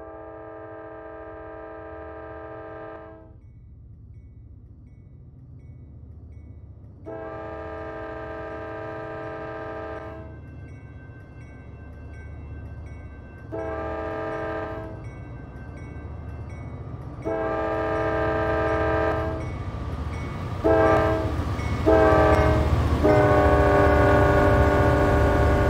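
A diesel locomotive engine rumbles steadily, getting louder as it approaches.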